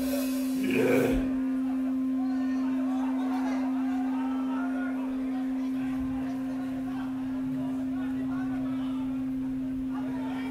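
A crowd chatters and calls out in a large space.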